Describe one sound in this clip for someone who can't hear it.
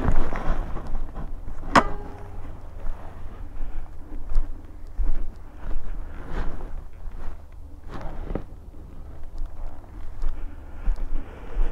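Footsteps squelch on soft, muddy grass.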